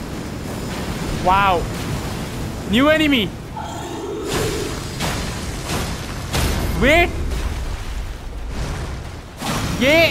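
Metal weapons clash and strike with sudden impacts.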